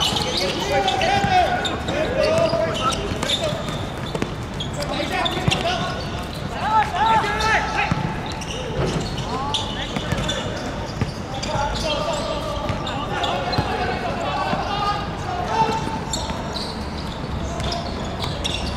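Young men shout and call to each other across an open outdoor court.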